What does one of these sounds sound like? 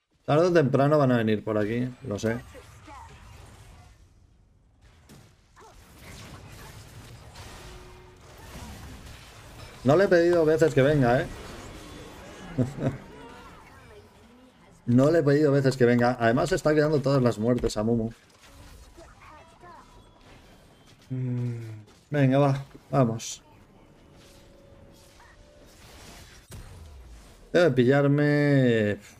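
A man talks with animation into a close microphone, in bursts.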